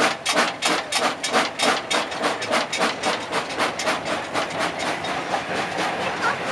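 A steam locomotive chuffs in a fast, regular rhythm.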